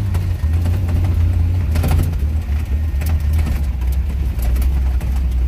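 A car engine roars loudly and steadily.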